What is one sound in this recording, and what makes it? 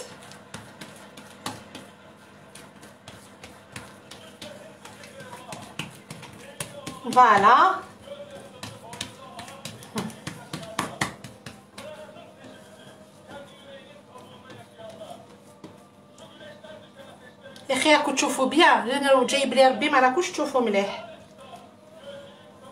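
Hands pat and press dough on a table with soft thuds.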